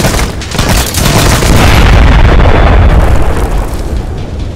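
An explosion booms with a loud, rumbling roar.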